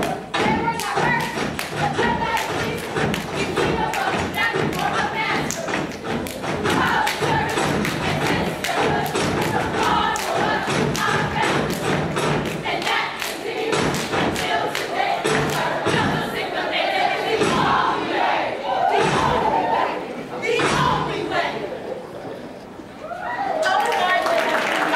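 Stepping feet stomp on a wooden stage.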